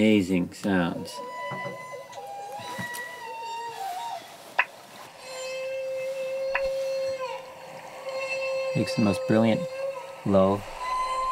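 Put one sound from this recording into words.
A recording plays from a laptop's small speaker.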